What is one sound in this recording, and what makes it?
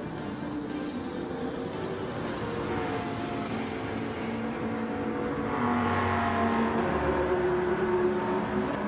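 A racing car engine roars.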